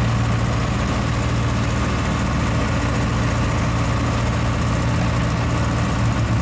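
A conveyor engine runs with a steady loud drone.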